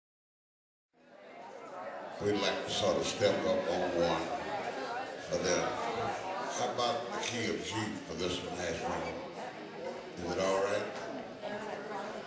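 An elderly man sings through a microphone.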